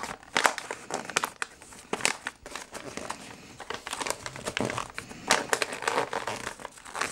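Wrapping paper crinkles and rustles as it is folded.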